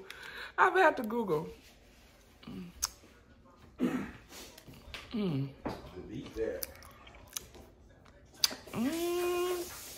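A woman chews and crunches food.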